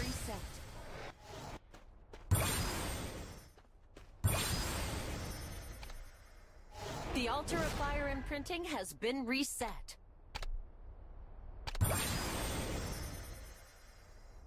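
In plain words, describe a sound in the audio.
Magic spells crackle and whoosh in loud bursts.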